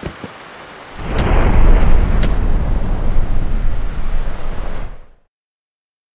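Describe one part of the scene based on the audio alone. A car engine roars as a car drives away.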